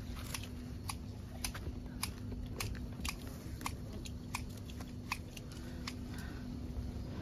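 Shears snip repeatedly at leafy stems.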